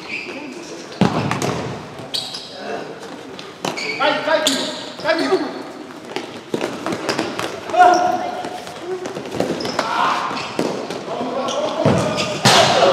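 A ball is kicked hard with a sharp thump in a large echoing hall.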